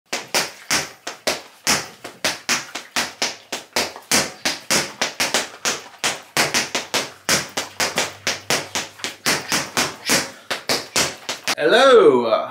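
Boxing gloves thump rapidly against a water-filled punching bag.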